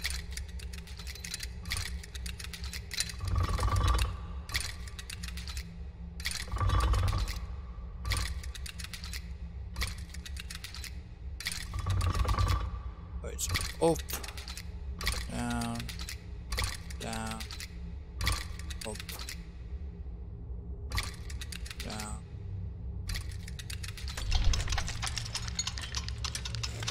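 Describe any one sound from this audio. A metal mechanism clicks and ratchets as it turns.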